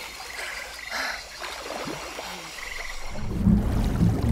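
Water laps and splashes around a swimmer.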